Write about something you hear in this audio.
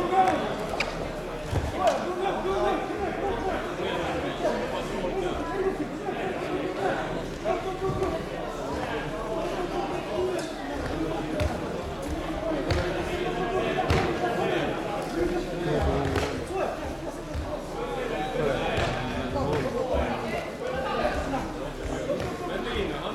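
Bodies thump and shuffle on a padded mat.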